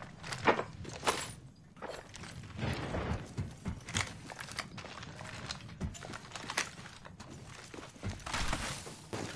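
Footsteps patter quickly across a hard floor.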